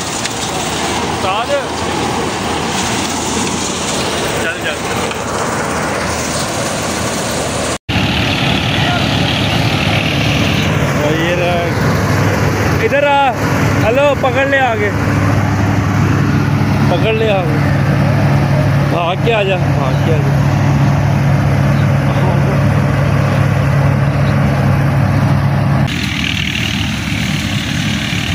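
A combine harvester engine runs with a steady loud drone.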